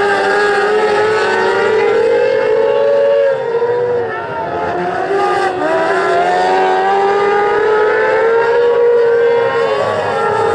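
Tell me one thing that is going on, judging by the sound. Race car engines roar loudly as the cars speed around a dirt track outdoors.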